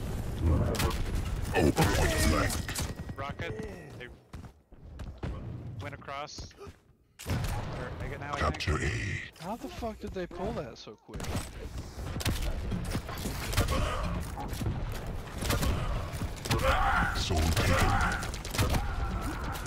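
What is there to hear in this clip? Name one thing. Gunfire and explosions crack and boom in a video game.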